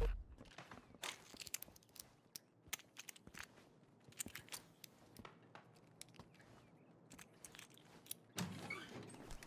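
Small metal clicks and scrapes come from a lock being picked.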